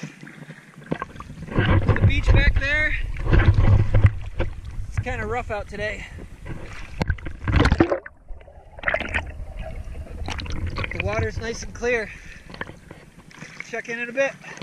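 Water splashes and sloshes around a swimmer.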